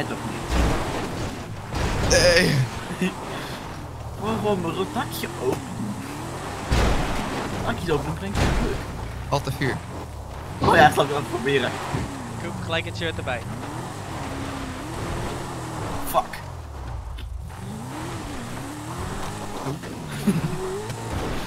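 A car engine revs up and down as it drives over rough ground.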